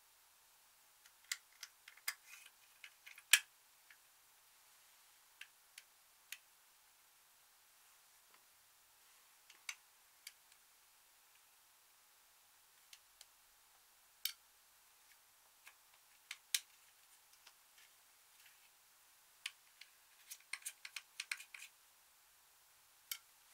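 Small plastic clicks and taps sound up close as a makeup compact is handled.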